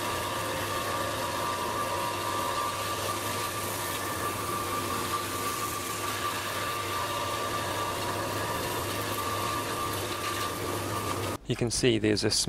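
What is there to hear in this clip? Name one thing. A woodworking machine hums and whirs steadily.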